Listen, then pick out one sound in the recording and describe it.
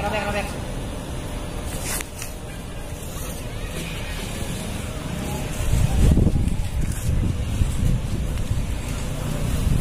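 Wind gusts across the microphone outdoors, growing stronger midway.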